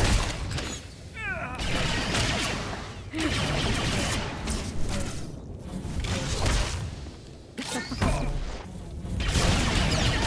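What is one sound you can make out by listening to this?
Game blasters and combat effects crackle and boom.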